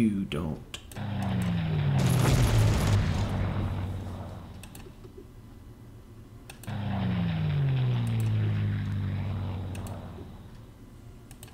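A tank engine rumbles loudly, then slowly fades away.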